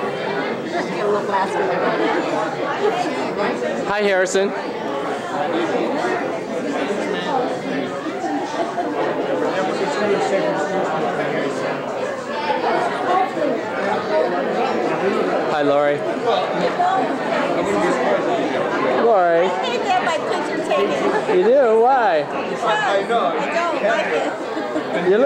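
A crowd of people chatters throughout in a busy room.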